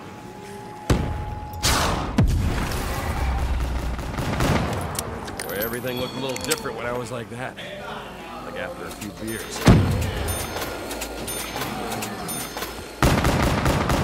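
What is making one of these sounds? Pistol shots bang loudly, one after another.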